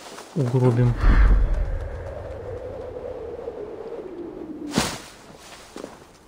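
Dry leaves rustle and scatter.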